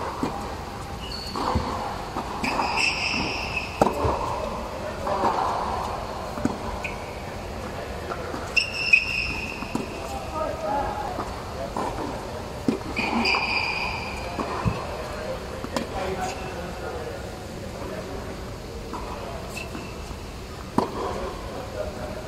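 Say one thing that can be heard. Tennis balls are struck with rackets, with sharp pops in a large echoing hall.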